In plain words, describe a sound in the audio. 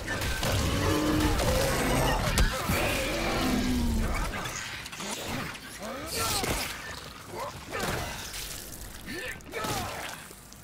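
A heavy blade slashes and hacks into flesh.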